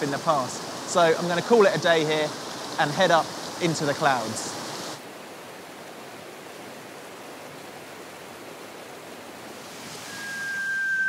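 A shallow stream rushes steadily over rocks.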